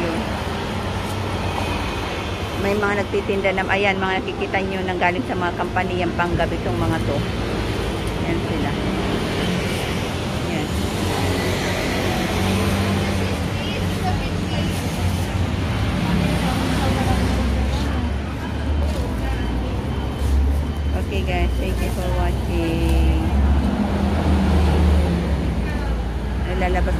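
Traffic rumbles steadily on a street outdoors.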